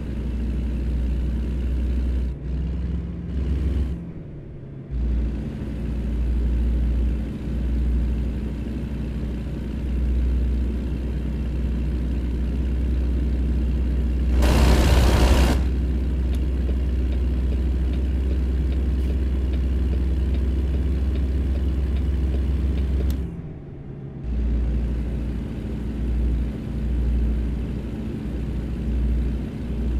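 A truck engine rumbles steadily with a deep drone.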